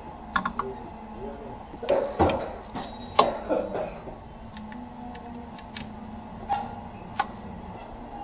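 Metal tools click and clink against an engine part.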